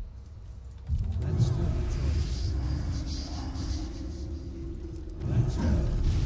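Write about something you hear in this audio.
Flames crackle and roar nearby.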